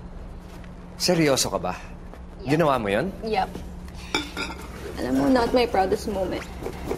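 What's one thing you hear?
A young woman speaks gently and emotionally, close by.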